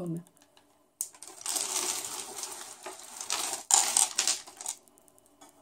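Piles of metal jewellery rustle and jingle under rummaging hands.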